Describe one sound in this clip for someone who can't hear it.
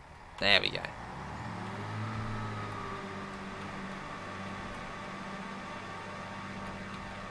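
A diesel train engine hums and rumbles steadily.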